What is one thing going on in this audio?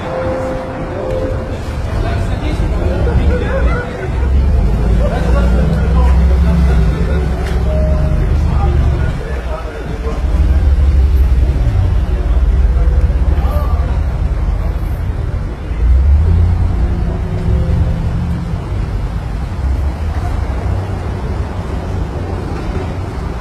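Sports car engines idle nearby with a deep rumble.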